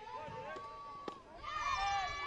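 A softball smacks into a catcher's glove.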